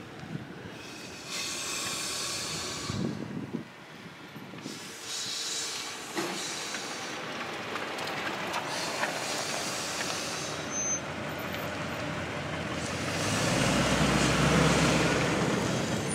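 An elderly man breathes heavily into a paper bag.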